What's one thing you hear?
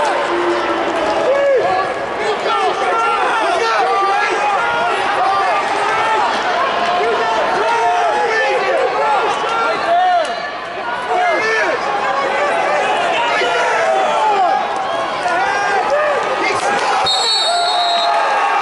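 A large crowd chatters and shouts in a big echoing arena.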